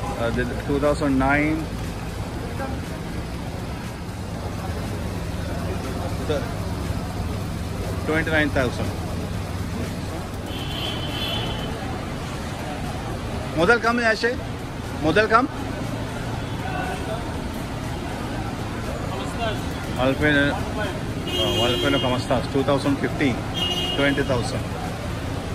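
Men talk loudly in bursts nearby.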